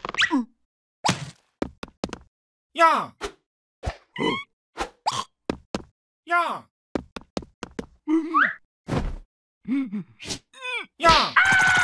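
A bird coos and grunts in short bursts.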